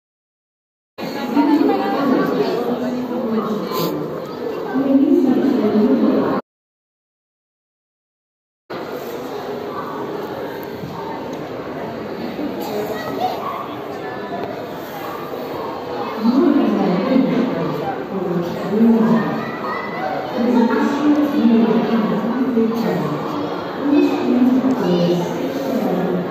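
A crowd of people chatter and murmur in a large echoing hall.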